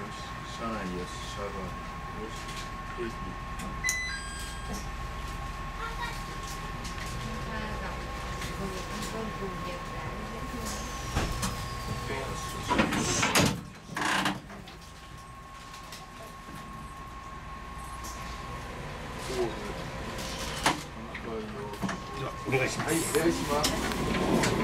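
A train rumbles along the rails at low speed.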